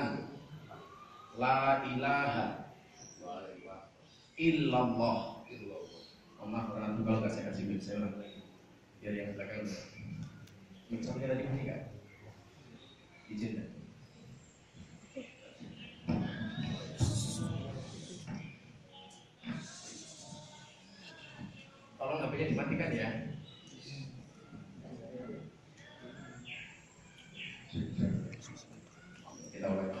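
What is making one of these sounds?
A man speaks calmly into a microphone, amplified in a room.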